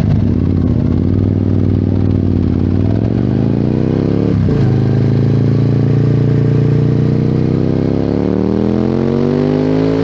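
A motorcycle engine revs up and accelerates, rising in pitch as the gears shift.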